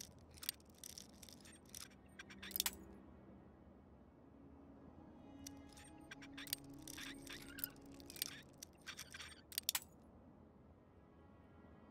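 A bobby pin snaps with a sharp click.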